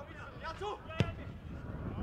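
A boot kicks a football hard.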